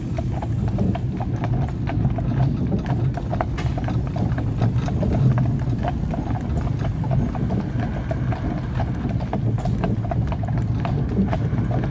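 Carriage wheels rumble over the road.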